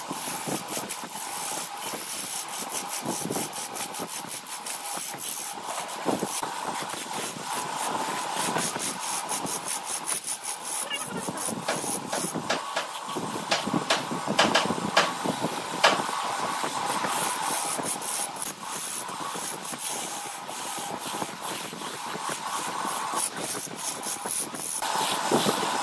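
A gouge cuts into spinning wood with a rough, chattering scrape.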